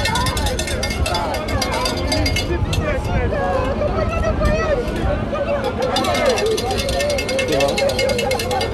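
A crowd of men and women sings together nearby, outdoors.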